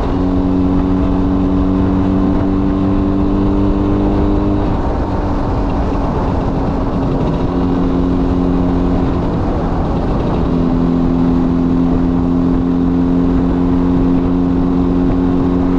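A small motorcycle engine hums steadily up close, its pitch shifting with gear changes.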